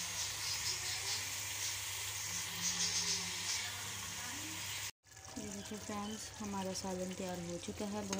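A metal ladle scrapes against a pot.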